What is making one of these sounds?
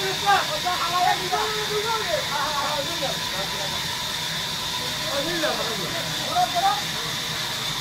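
Men talk loudly nearby over a running machine.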